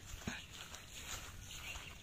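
Footsteps rustle through dry grass nearby.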